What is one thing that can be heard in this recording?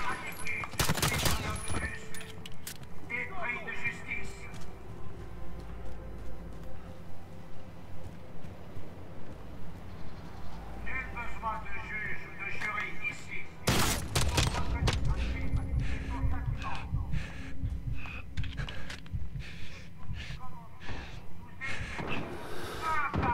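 Gunshots ring out in loud rapid bursts.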